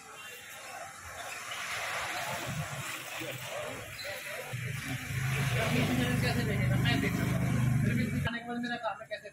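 A motorcycle engine hums as it rides past.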